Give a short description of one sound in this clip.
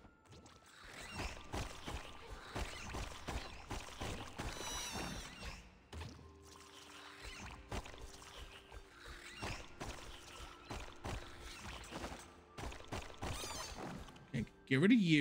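Sword slashes and hits clatter in a video game.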